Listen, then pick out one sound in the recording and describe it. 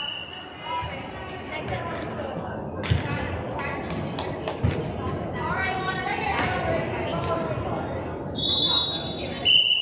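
Young girls chatter and call out in a large echoing gym.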